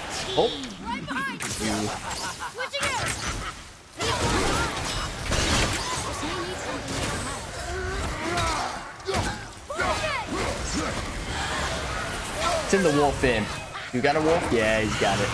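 Weapons clash and thud in a fast fight.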